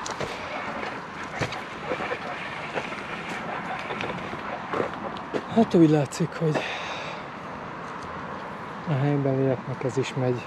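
Bicycle tyres crunch and rattle over a loose gravel track.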